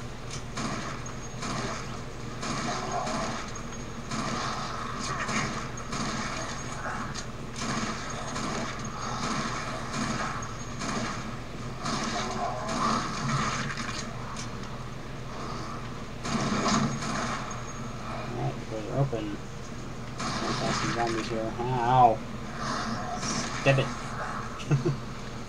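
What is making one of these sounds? Gunshots fire rapidly from a video game.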